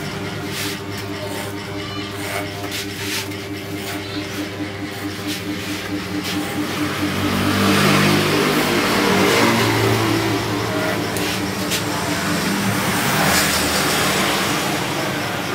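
Electric hair clippers buzz close by.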